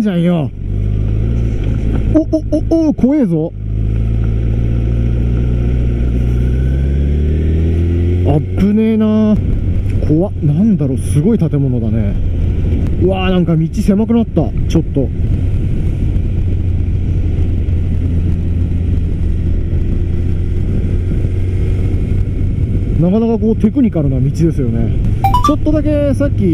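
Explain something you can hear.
A motorcycle engine hums steadily and revs up as it rides.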